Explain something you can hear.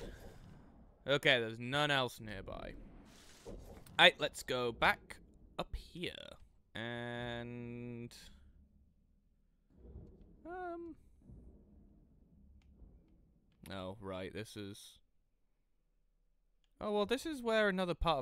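Short interface chimes ring now and then.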